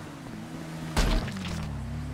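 A loud gunshot cracks.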